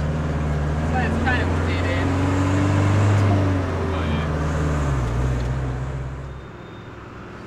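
A vehicle engine hums steadily while driving on a road.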